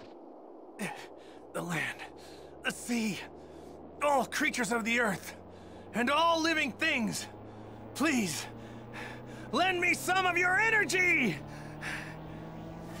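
A young man shouts with strain, as if in a game.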